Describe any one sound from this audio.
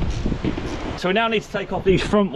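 A man speaks cheerfully, close by.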